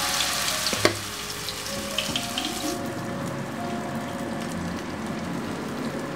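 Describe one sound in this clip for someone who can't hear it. Oil sizzles loudly as food fries in a pan.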